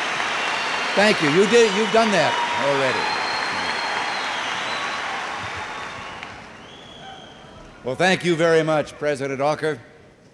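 An elderly man speaks into a microphone over loudspeakers.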